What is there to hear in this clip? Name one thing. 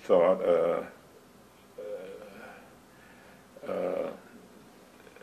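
An elderly man speaks calmly and close by, in short phrases.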